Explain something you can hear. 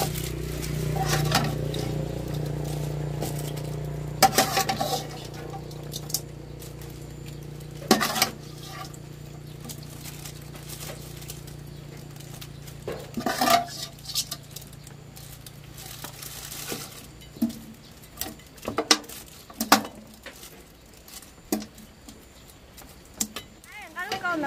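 A metal ladle scrapes and knocks against the inside of a metal pot.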